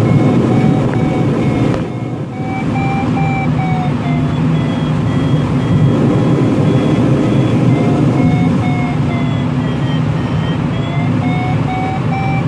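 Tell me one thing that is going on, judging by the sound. Wind rushes loudly past the cockpit.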